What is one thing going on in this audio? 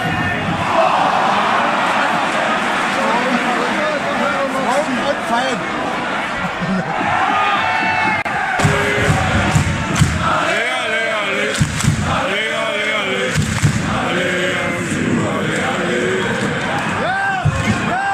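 A large crowd of fans chants and cheers loudly in an open stadium.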